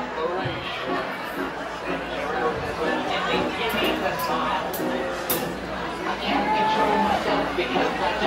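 Drums are played with crashing cymbals.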